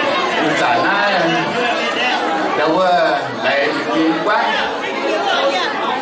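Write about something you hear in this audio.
A crowd of men and women chatters and laughs.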